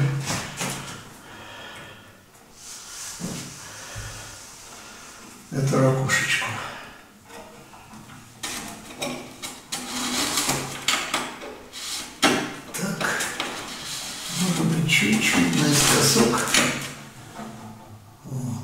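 Stiff plastic sheets rustle and crinkle as they are handled.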